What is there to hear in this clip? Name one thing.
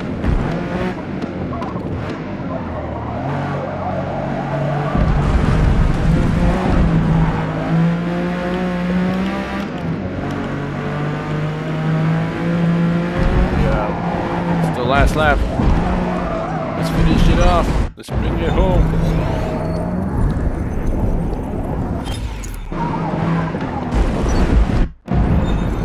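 A racing car engine roars, revving up and dropping as it shifts gears.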